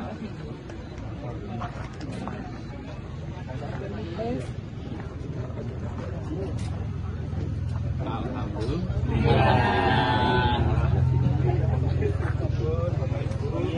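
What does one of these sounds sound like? Men and women talk and chatter together nearby, outdoors.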